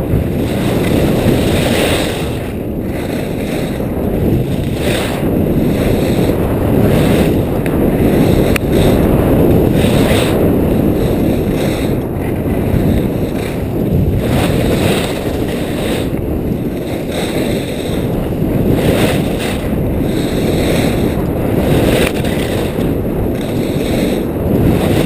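Skis scrape and hiss over packed snow in carving turns.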